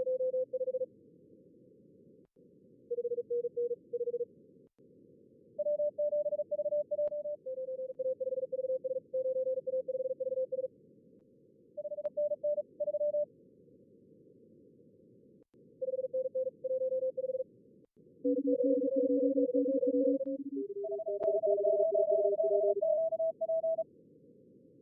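Morse code beeps come through a radio receiver.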